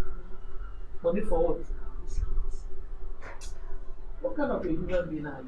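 A second woman answers calmly, close by.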